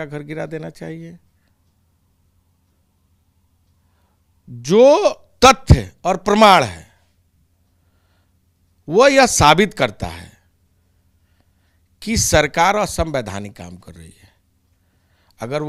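A middle-aged man speaks with animation close to a microphone, in bursts with pauses.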